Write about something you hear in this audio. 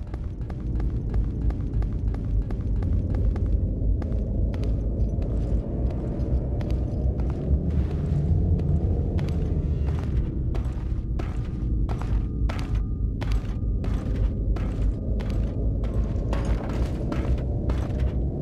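Footsteps clack steadily on stone.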